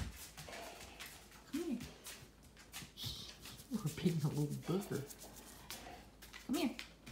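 A dog's collar tag jingles softly.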